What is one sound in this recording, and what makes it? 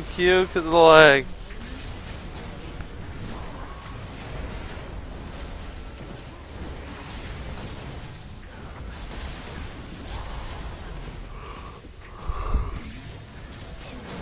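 Video game spells and blasts crackle and boom.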